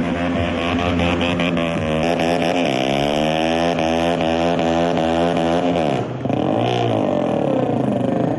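A motorcycle engine roars loudly, revving up and down.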